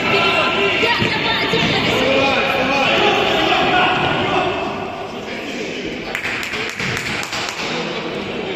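A ball is kicked with a thud.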